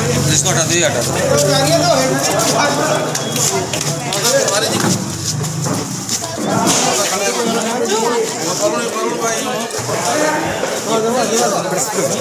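Several men talk at once nearby, outdoors.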